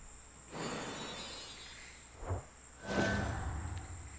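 A magical chime shimmers.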